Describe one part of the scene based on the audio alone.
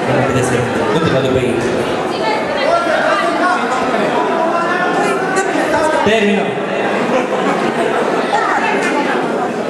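A young woman sings into a microphone over loudspeakers.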